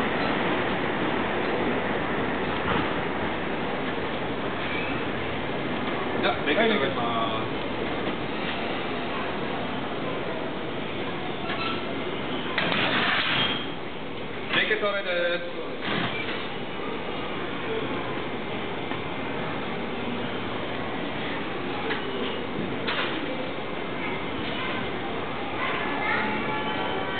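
A steady noisy hum of a busy railway station fills the air.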